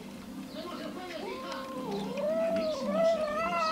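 A cat meows repeatedly.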